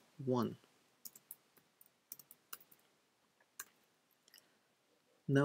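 Keyboard keys click as someone types.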